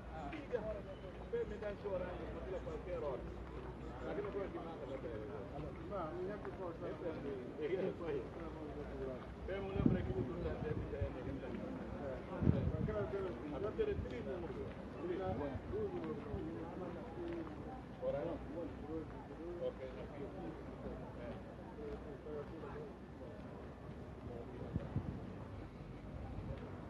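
A crowd of men talk and shout outdoors, nearby and far off.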